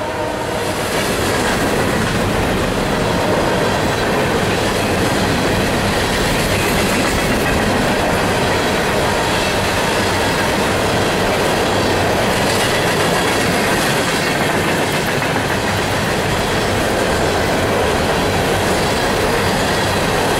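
Freight cars rumble and clatter steadily along the rails close by.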